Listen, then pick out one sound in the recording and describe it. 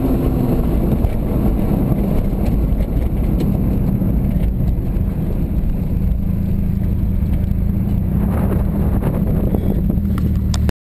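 A car engine drones loudly and steadily from inside the car.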